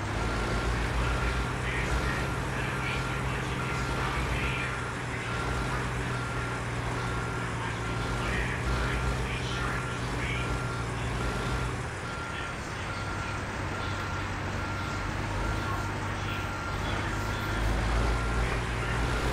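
A truck's reversing alarm beeps at a steady, even pace.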